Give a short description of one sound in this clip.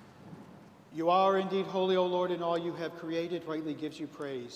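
A man chants in a steady sung voice through a microphone, echoing in a large hall.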